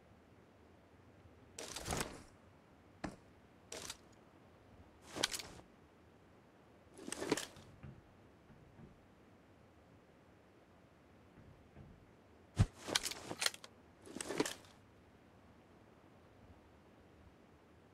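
A rifle fires a sharp, loud shot.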